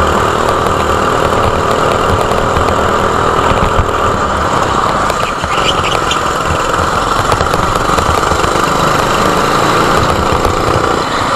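Other kart engines whine nearby.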